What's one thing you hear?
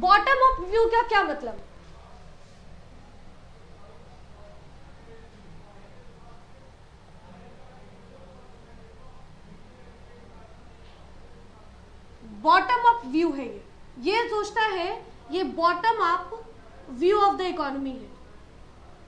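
A young woman speaks calmly, explaining.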